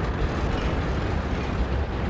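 Flames crackle from a burning wreck.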